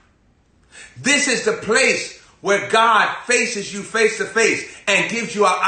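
A young man preaches loudly and passionately, shouting close to a microphone.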